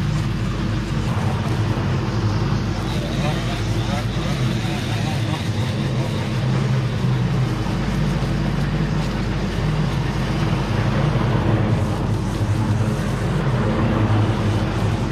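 A string trimmer whines as it cuts grass.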